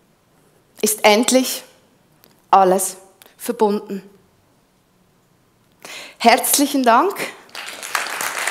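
A woman speaks calmly through a headset microphone in a large hall, with pauses between phrases.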